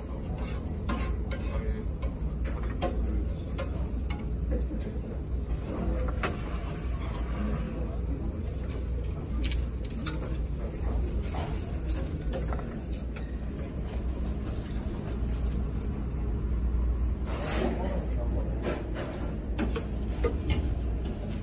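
Plastic tongs clack against a serving dish.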